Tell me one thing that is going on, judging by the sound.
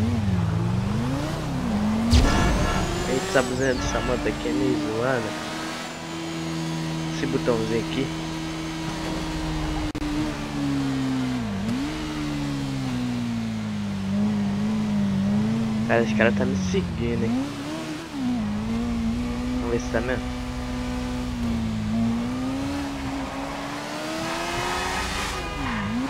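A scooter engine hums and revs up and down.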